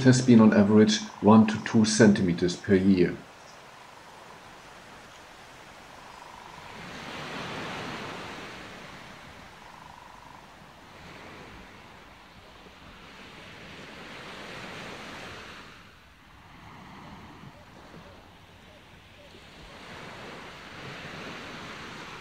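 Wind blows across open ground in gusts.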